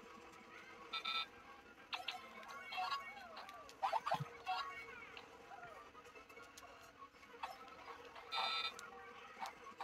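Game sound effects chime and jingle in short bursts.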